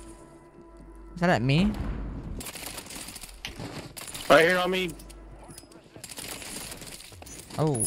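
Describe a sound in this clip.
Rapid gunfire rattles in a video game.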